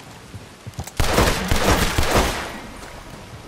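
A gunshot cracks nearby.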